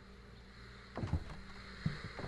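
A wooden door swings open with a thud.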